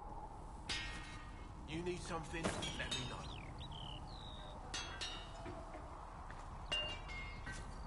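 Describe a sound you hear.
A hammer strikes metal on an anvil with ringing clangs.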